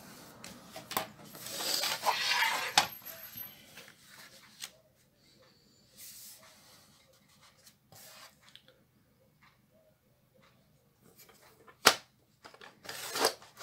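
A plastic ruler clicks and taps against a board.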